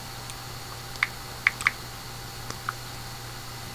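Small objects click and tap in a man's hands close by.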